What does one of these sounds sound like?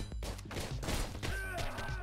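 A gun fires a burst of shots.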